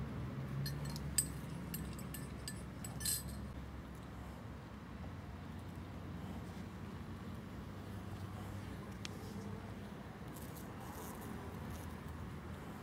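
A light wind blows outdoors through grass and leaves.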